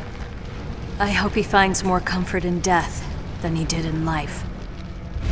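A young woman speaks calmly and quietly, close by.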